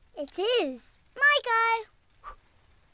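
A child's voice cheers with excitement, rising and falling.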